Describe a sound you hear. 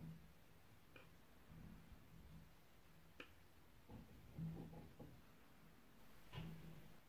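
A crochet hook clicks softly against yarn.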